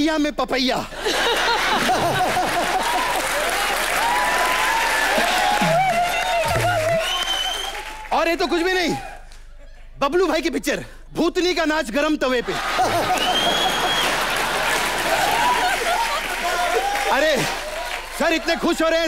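A crowd laughs and cheers in a large hall.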